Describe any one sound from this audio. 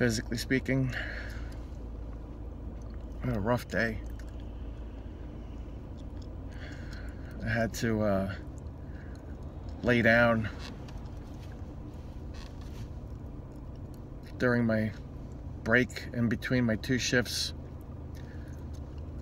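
A car engine hums low and steady inside the car.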